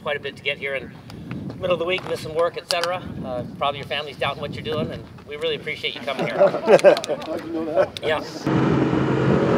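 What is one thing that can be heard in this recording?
A man speaks loudly outdoors, addressing a group.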